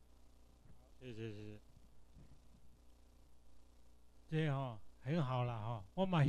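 An elderly man speaks through a microphone.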